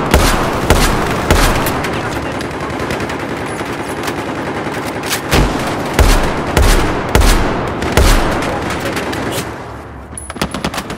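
Loud rifle shots boom one after another, echoing.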